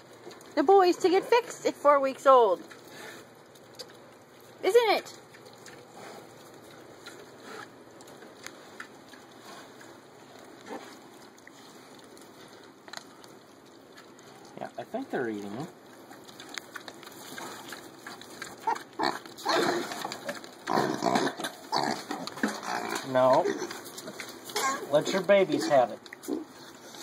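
Piglets squeal and grunt up close.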